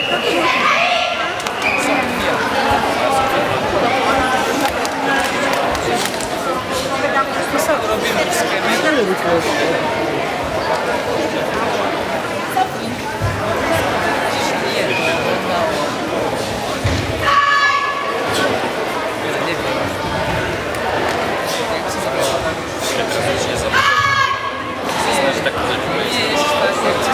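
People murmur and chatter in an echoing hall.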